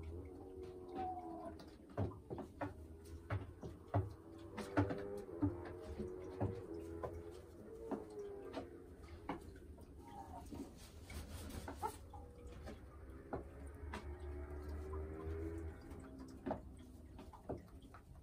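A hen clucks and croons softly up close.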